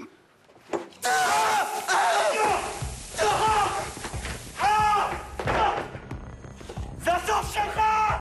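A man shouts and groans in pain.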